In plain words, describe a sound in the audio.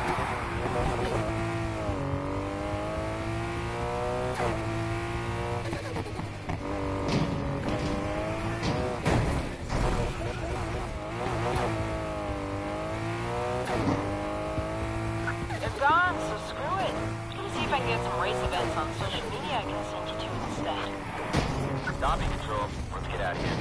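A car engine roars and revs, its pitch rising and falling as gears shift.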